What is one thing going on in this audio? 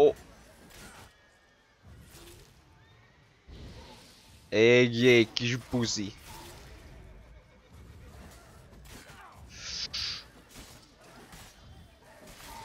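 A sword swishes and clashes in a fight.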